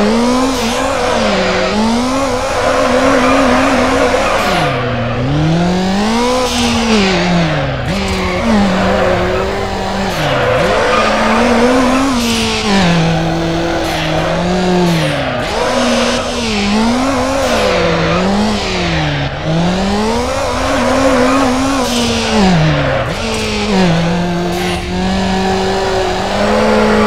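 Tyres screech on the road surface.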